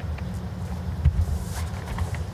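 A bowl thuds down onto a carpet as it is delivered.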